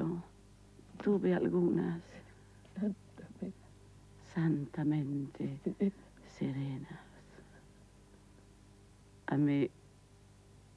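An elderly woman answers tearfully, her voice breaking.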